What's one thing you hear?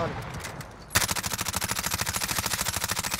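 A gun fires in a rapid, steady burst.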